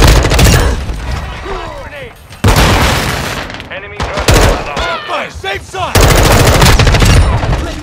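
Rapid gunfire bursts loudly in short volleys.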